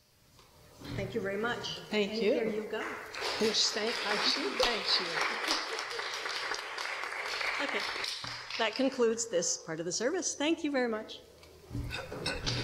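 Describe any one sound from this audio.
A woman speaks through a microphone in a large echoing room.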